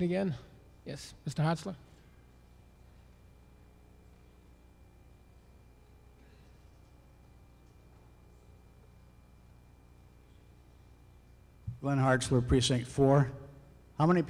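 A man speaks calmly into a microphone, heard through loudspeakers.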